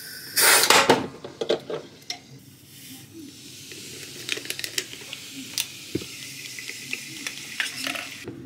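Bubbles fizz softly in a bottle of fizzy water.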